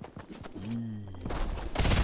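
An assault rifle fires in a video game.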